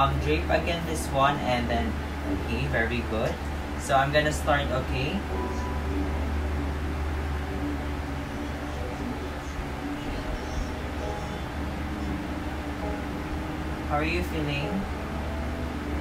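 A young man speaks softly close by.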